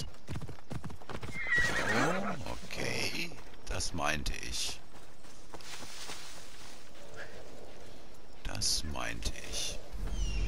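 Footsteps rustle through dry grass and bushes.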